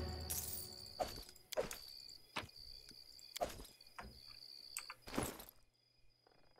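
Short menu clicks from a game sound now and then.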